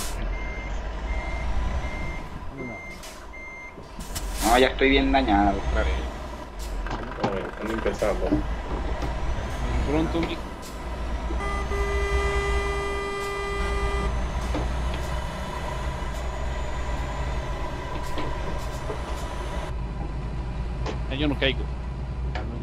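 A heavy truck engine rumbles steadily.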